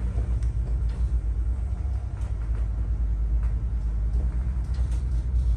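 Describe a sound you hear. A boat's engine drones with a steady low rumble.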